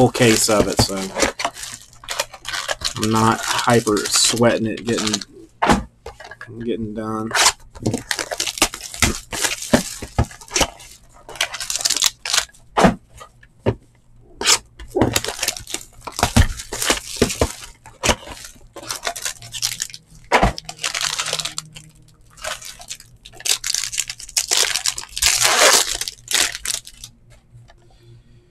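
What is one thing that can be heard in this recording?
Plastic wrappers crinkle and rustle close by.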